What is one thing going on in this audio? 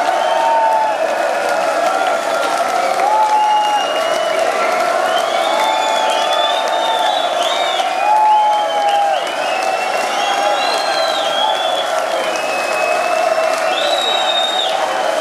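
A crowd cheers and whistles loudly in a large echoing hall.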